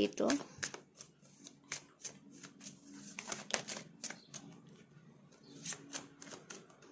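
Playing cards riffle and flick as a deck is shuffled by hand.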